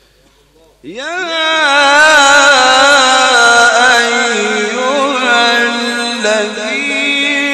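A man chants loudly and melodiously into a microphone, in a large echoing hall.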